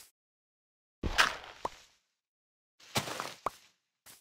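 A block of dirt breaks with a crumbling crunch.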